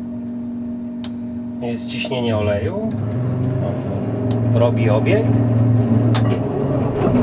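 Switches click sharply.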